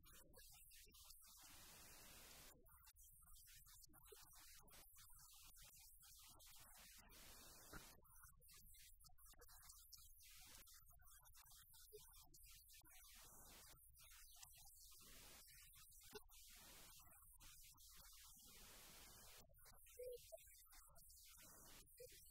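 A middle-aged woman reads out calmly into a microphone in an echoing room.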